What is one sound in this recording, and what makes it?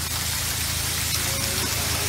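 Water gushes and splashes through a lock gate.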